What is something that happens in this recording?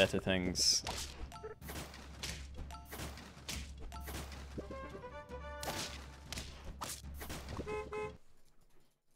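Short cartoonish battle sound effects pop and clatter in quick succession.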